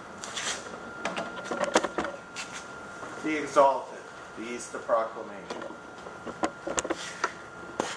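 An older man speaks calmly, reading aloud close by.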